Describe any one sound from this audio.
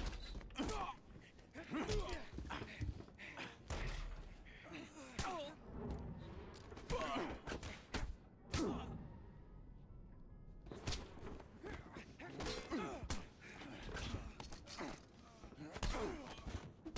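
A man grunts and strains close by.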